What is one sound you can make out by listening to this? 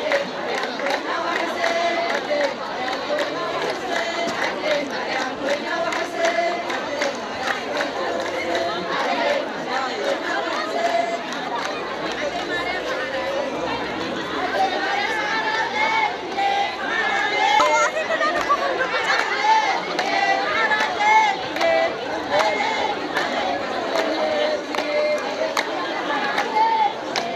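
A crowd of women sings together outdoors.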